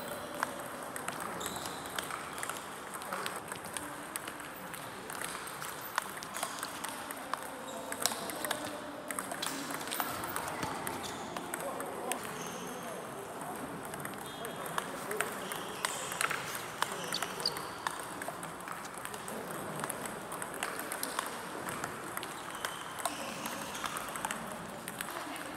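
Ping-pong balls click against paddles and tables in a large echoing hall.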